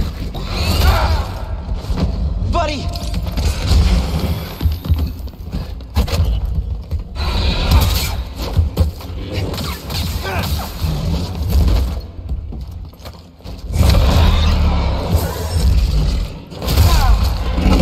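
Heavy blows strike with loud thuds.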